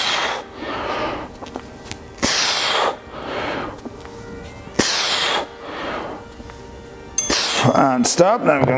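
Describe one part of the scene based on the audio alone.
A man exhales sharply and heavily with each lift.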